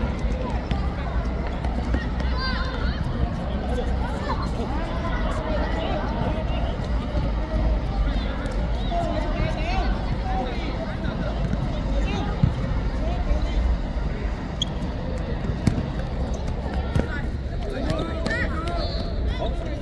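Children shout and call out across an open outdoor field.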